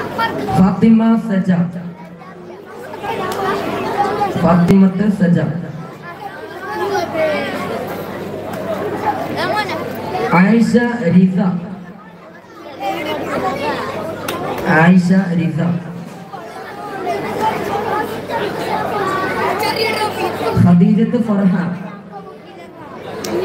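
A man announces over a loudspeaker.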